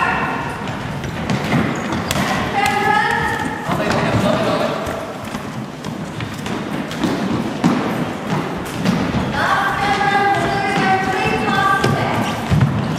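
Trainers squeak and thud on a hard floor.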